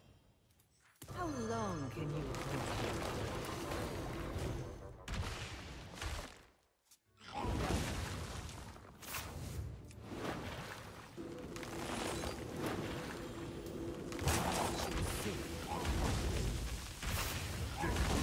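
Magical game effects whoosh and chime.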